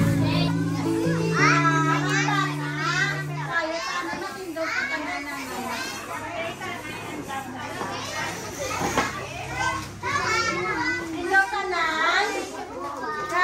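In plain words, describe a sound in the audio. Many children chatter and call out together.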